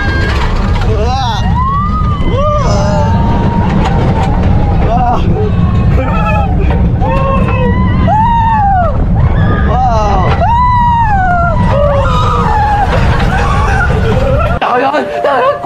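A young man screams loudly close by.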